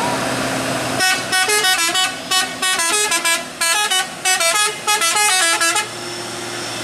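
A truck horn blares a series of quick musical blasts.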